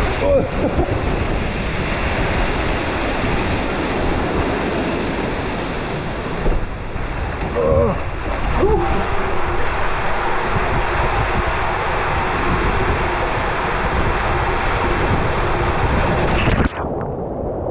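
Water rushes and roars loudly inside a slide tube.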